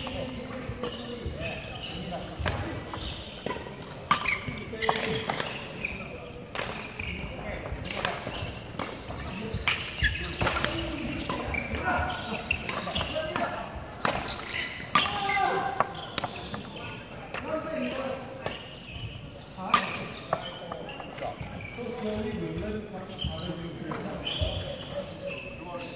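Badminton rackets strike a shuttlecock back and forth, echoing in a large hall.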